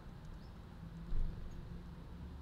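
A small bird flutters its wings briefly up close.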